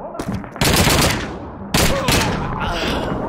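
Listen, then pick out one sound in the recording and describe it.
A submachine gun fires loud bursts at close range.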